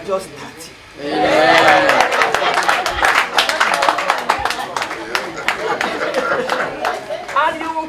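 People clap their hands in a lively rhythm.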